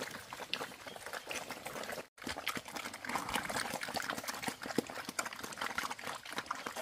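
Pigs snuffle and chomp noisily at their feed.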